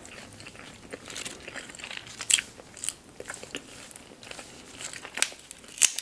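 Lettuce leaves crinkle and rustle close by.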